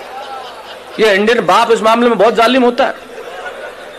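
A man speaks loudly and with feeling into a microphone, heard over loudspeakers outdoors.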